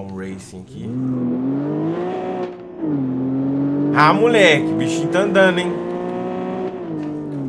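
A sports car engine roars and revs up and down.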